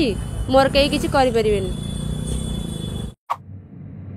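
A young woman speaks into microphones up close.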